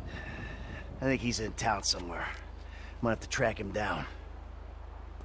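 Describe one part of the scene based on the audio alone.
A second man answers in a calm, deep voice.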